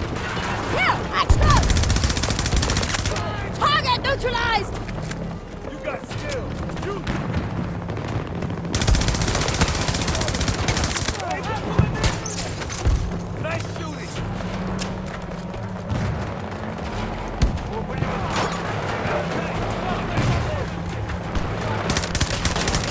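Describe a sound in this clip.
Gunshots crack repeatedly in the distance.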